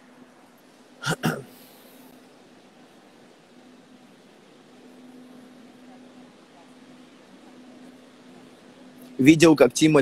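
A man speaks with animation over an online call, close to a phone microphone.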